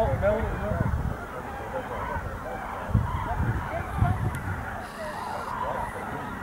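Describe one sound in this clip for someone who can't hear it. A large flock of geese honks overhead.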